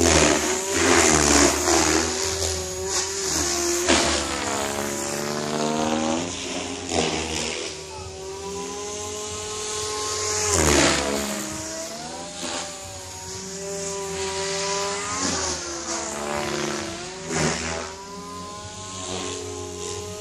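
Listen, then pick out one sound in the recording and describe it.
A small model helicopter's engine whines steadily, its pitch rising and falling as it flies around.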